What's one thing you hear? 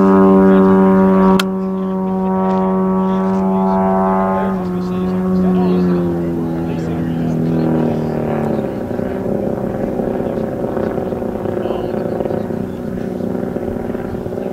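A small model airplane engine drones steadily overhead, then drops in pitch.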